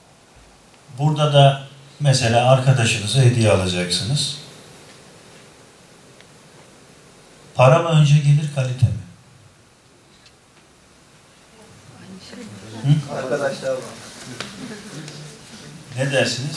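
A middle-aged man speaks calmly into a microphone, in pauses.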